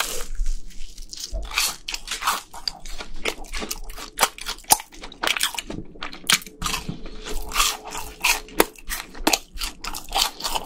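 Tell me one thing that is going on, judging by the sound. A young man chews noisily close to a microphone.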